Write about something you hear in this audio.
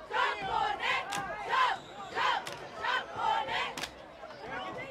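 Young women clap in rhythm.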